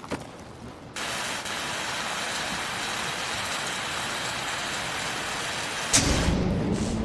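A welding torch hisses and crackles steadily, then stops abruptly.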